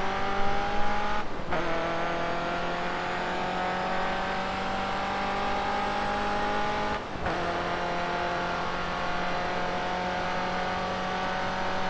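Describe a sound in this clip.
A racing car engine roars at high revs, climbing steadily in pitch.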